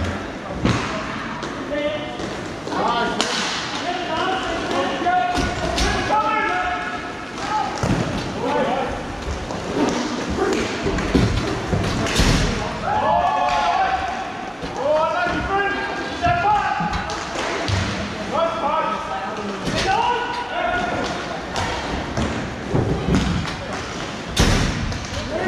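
Hockey sticks clack sharply against a ball.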